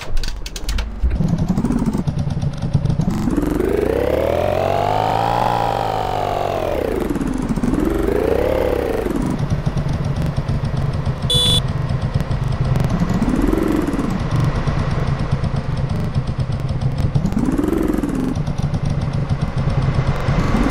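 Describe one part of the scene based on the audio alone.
A motorcycle engine revs up and drops back again and again.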